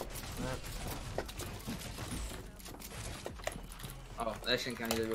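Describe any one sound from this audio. Game building pieces click and thud rapidly.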